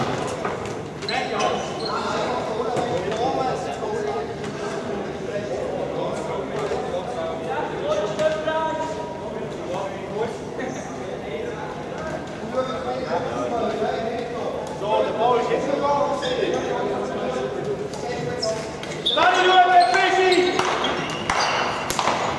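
Players shout and call to each other in a large echoing hall.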